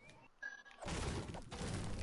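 A pickaxe thuds against wood.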